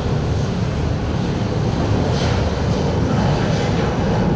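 A jet airliner roars as it takes off.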